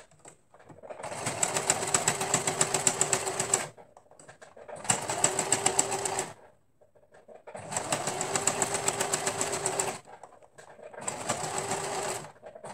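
A sewing machine runs in fast bursts, stopping and starting.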